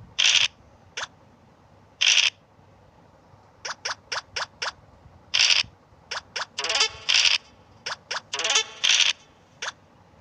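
Dice rattle briefly as they roll.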